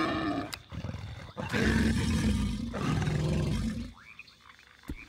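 A large beast growls and snarls loudly.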